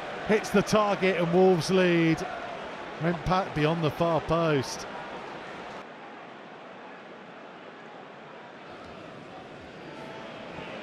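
A large stadium crowd murmurs and cheers in the distance.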